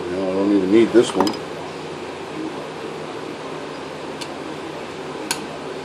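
A small metal tool clicks as a wire is worked.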